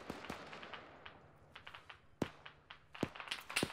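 Gear rattles as a rifle is raised.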